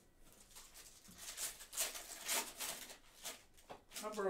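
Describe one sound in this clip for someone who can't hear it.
A plastic card pack crinkles as it is torn open.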